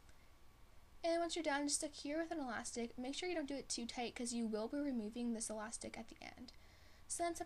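A young woman talks calmly and cheerfully close to a microphone.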